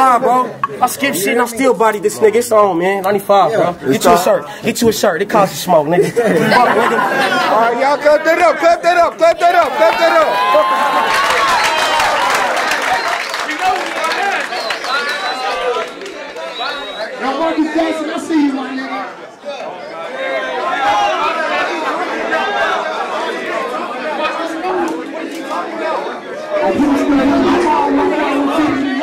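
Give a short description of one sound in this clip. A young man raps forcefully close by.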